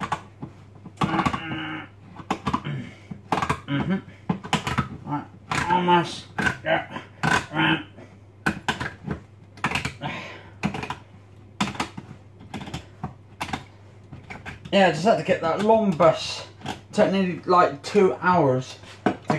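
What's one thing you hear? Dishes and utensils clatter and clink.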